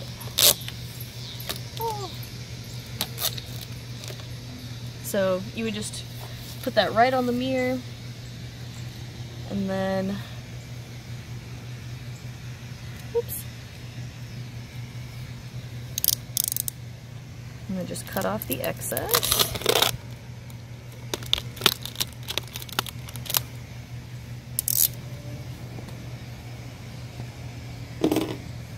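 Plastic film crinkles and rustles.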